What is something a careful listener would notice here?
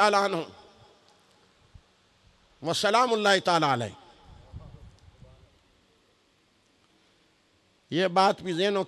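A middle-aged man preaches emphatically into a microphone, in bursts with long pauses.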